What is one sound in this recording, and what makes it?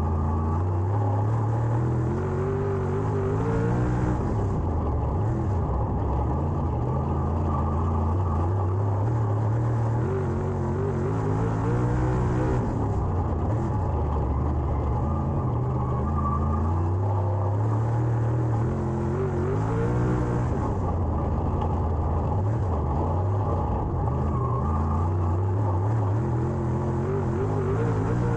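A race car engine roars loudly close by, rising and falling in pitch as it speeds up and slows for the turns.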